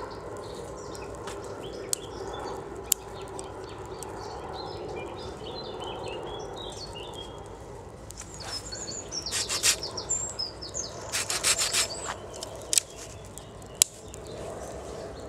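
A small wood fire crackles and pops.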